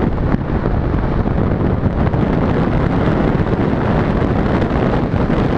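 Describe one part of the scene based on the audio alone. Strong wind roars and buffets loudly over a microphone in flight.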